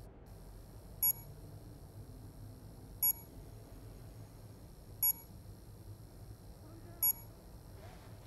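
An electronic device beeps sharply every two seconds.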